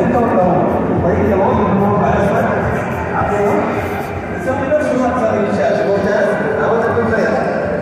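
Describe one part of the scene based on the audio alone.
A crowd of people chatters in a large echoing hall.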